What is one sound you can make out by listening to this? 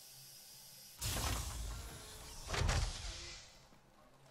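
A heavy metal door slides open with a hiss.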